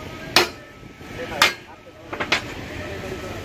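A hammer strikes metal with sharp clangs.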